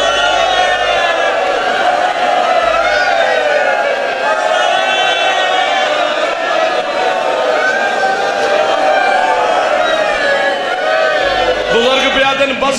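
A crowd of men chants along.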